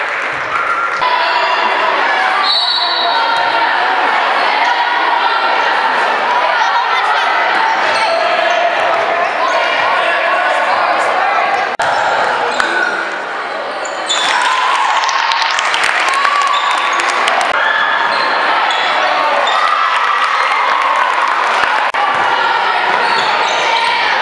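A crowd of spectators calls out and cheers in an echoing gym.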